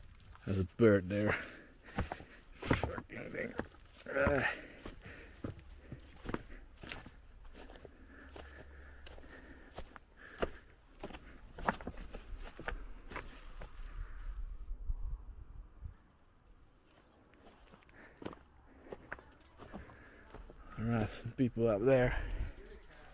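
Footsteps crunch through dry grass and loose stones.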